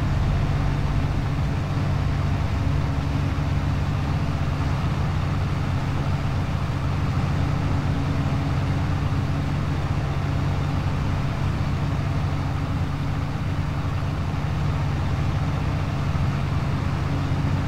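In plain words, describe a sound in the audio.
A tractor engine drones steadily from inside a closed cab.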